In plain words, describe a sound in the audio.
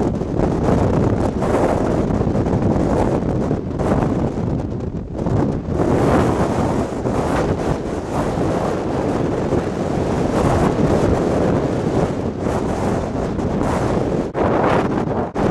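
Wind buffets and rumbles steadily outdoors.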